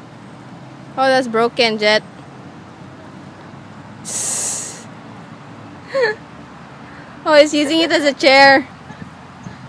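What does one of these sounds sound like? A young woman talks playfully and close by in a high, sing-song voice.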